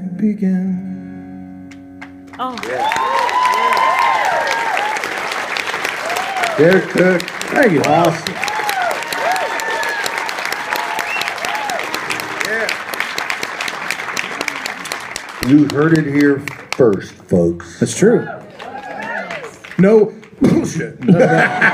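A man sings through a microphone, heard from the audience.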